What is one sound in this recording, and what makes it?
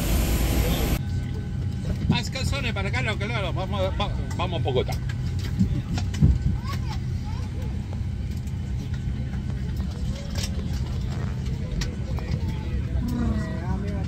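An aircraft cabin hums steadily.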